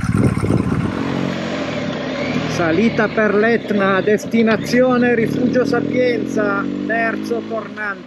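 A man talks close into a helmet microphone.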